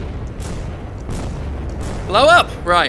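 An explosion booms with a low rumble.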